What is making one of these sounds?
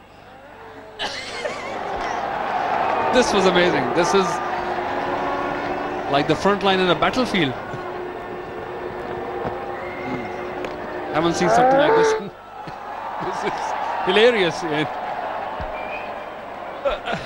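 A large crowd cheers and murmurs in an open stadium.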